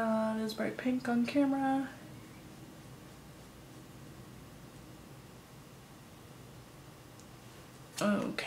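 A young woman speaks calmly and close to a microphone.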